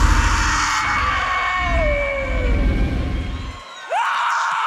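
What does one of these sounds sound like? A young woman screams loudly and shrilly, her voice sliding in pitch.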